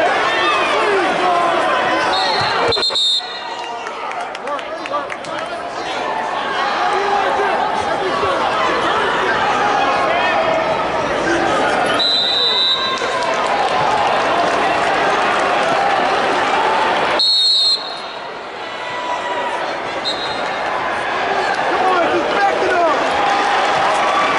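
A large crowd chatters and shouts in a big echoing hall.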